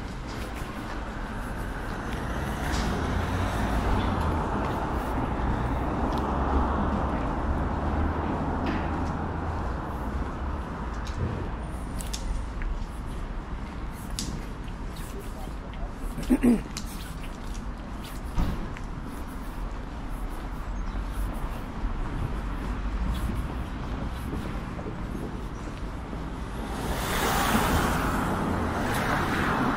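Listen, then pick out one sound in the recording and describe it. Distant city traffic rumbles steadily outdoors.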